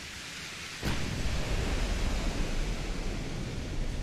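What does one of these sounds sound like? A heavy ship's gun fires with a loud boom that rumbles away.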